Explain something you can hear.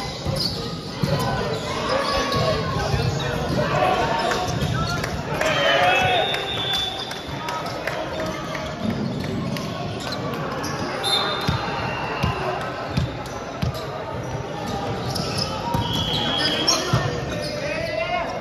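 A ball thuds as players hit it.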